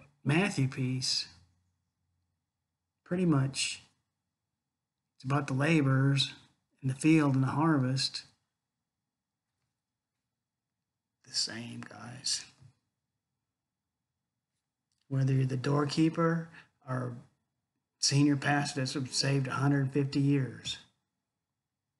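An older man speaks calmly in short phrases into a close microphone, as if on an online call.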